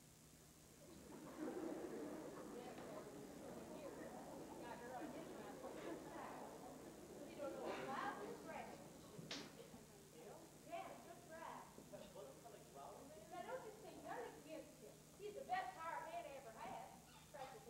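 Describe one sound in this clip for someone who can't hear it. A woman speaks on a stage, heard from a distance in a large hall.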